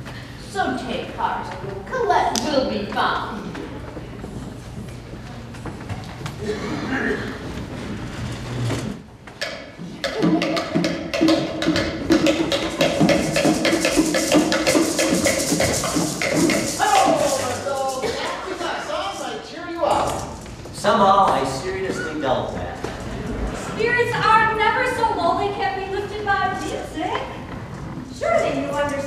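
Women speak and sing with animation on a stage, heard from the audience.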